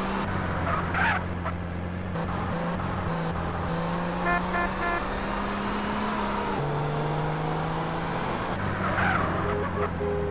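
Car tyres screech on pavement.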